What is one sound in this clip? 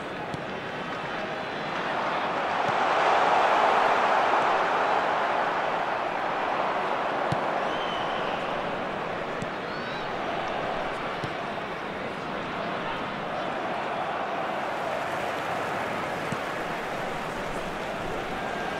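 A large crowd roars steadily, swelling loudly and then settling.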